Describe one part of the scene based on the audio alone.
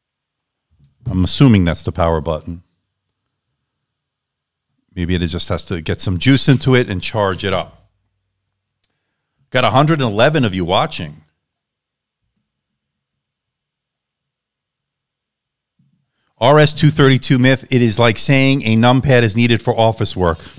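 A man speaks calmly into a close microphone, pausing between phrases.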